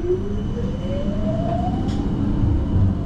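A tram's motor whines, rising in pitch as it speeds up.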